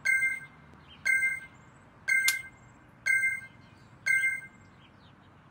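A countdown beeps once a second, five times.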